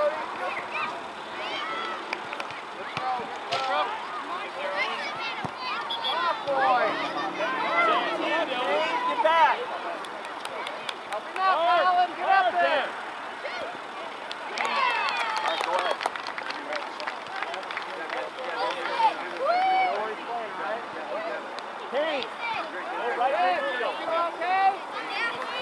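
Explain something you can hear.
Young players call out to each other across the field.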